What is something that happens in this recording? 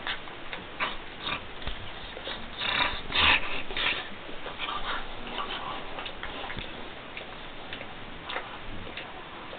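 Dogs growl and snarl playfully while wrestling.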